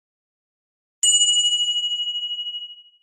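A bell chimes and rings out.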